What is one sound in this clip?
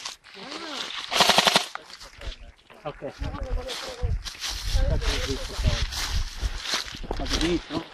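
Tyres roll and crunch over a dirt trail.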